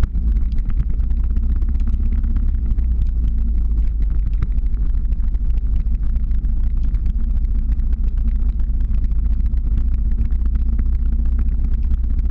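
Small hard wheels roll and rattle steadily over rough asphalt.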